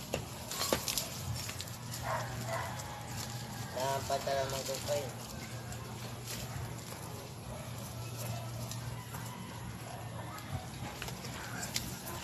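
Small stones clatter and scrape underfoot.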